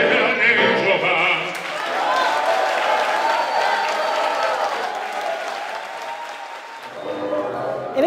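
An elderly man sings with feeling into a microphone in a large echoing hall.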